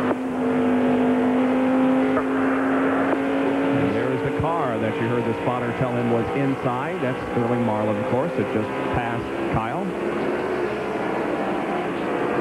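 Other race cars roar past close by.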